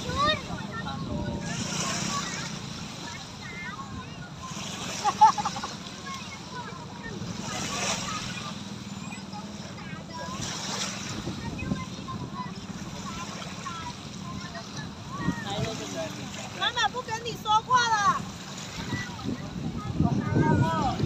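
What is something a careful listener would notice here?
Water splashes and rushes past a moving boat.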